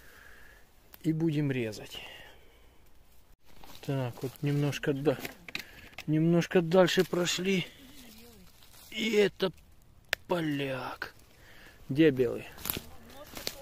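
Dry leaves rustle underfoot as someone walks.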